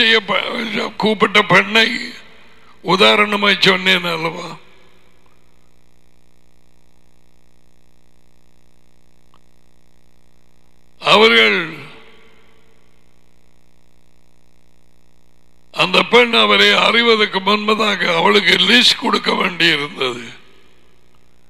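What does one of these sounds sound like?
A man talks with animation into a headset microphone, with long pauses.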